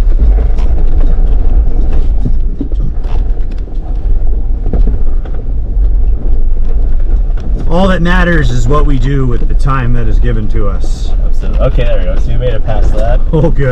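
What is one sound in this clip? Tyres crunch over rocks and gravel.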